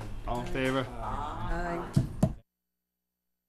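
A man speaks with animation into a microphone nearby.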